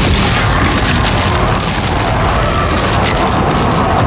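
A burst of sparkling magic crackles and fizzes.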